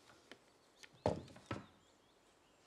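A box is set down with a soft thud.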